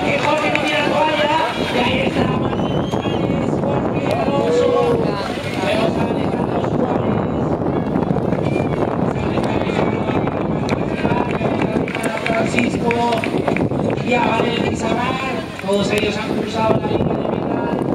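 A crowd of spectators talks and calls out outdoors.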